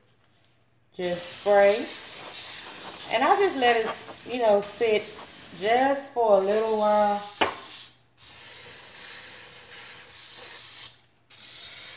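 An aerosol can sprays with a steady hiss.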